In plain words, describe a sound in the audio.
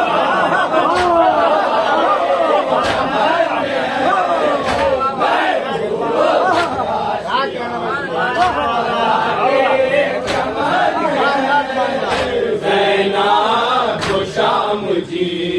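A man leads the chant through a microphone, amplified over a loudspeaker.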